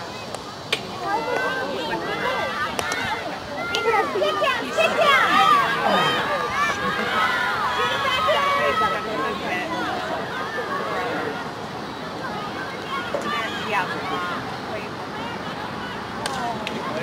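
Young women shout and cheer outdoors.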